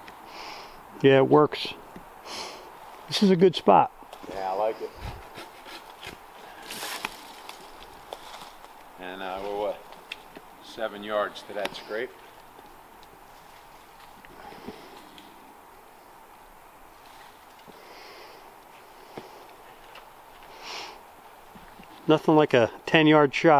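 A man talks loudly outdoors.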